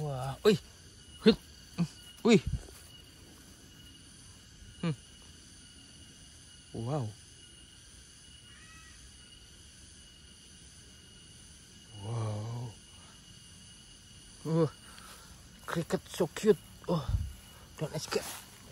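Leaves rustle as a hand pushes through grass and low plants.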